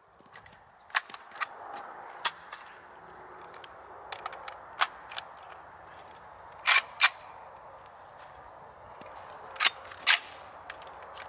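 A shotgun fires sharp, echoing shots outdoors.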